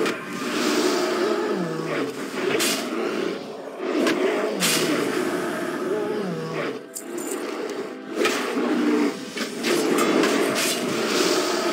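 Weapons clash and strike in a fight.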